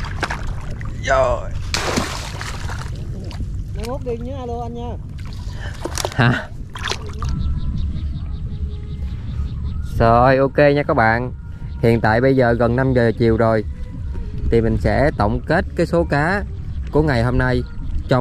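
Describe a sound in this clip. A fish thrashes and splashes in shallow water.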